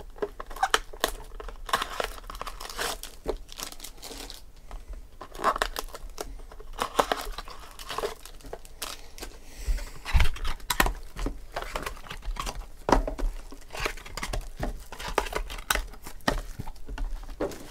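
Cardboard boxes tap and scrape against each other.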